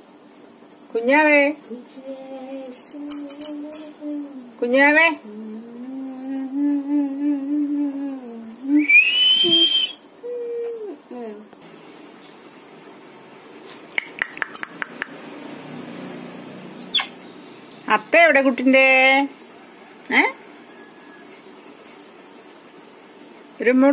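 A parrot screeches and chatters loudly close by.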